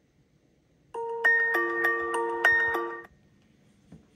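A tablet speaker plays a short game tune.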